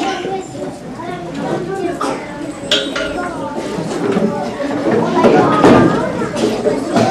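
A young child speaks loudly in a room with an echo.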